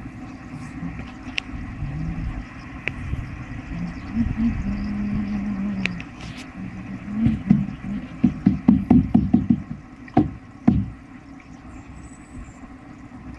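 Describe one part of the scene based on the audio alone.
Air bubbles up through water from a tube, gurgling and popping.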